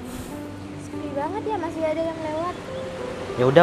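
A young woman talks nearby.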